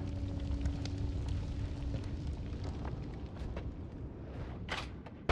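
A video game's low, rumbling background sound plays steadily.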